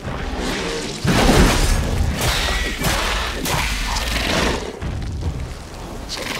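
Fire roars and bursts in flames.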